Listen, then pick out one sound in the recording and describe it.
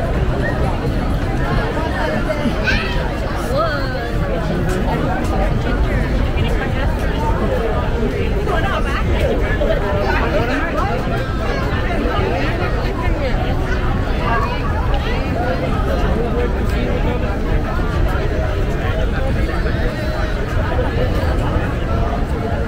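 A large outdoor crowd chatters all around.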